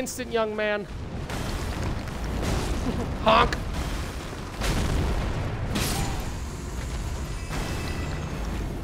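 Game combat sounds of weapons striking and roaring crash loudly.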